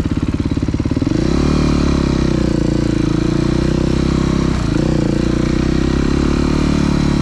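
A dirt bike engine revs up as the bike pulls away and accelerates.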